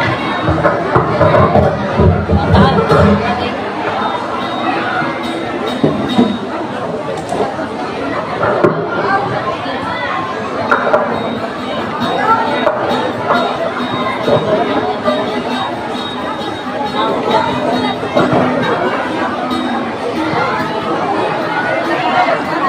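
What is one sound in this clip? A woman sings into a microphone through loudspeakers.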